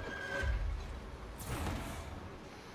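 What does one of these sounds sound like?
Metal smashes with a sharp crash.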